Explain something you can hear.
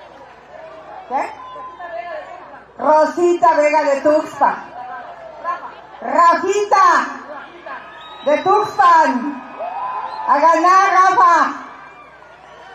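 A middle-aged woman speaks loudly and with animation through a microphone over loudspeakers, outdoors.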